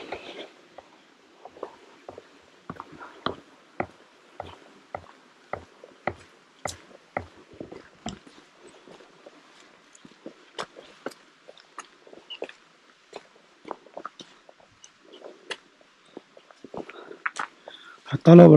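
Footsteps tread on a stone path.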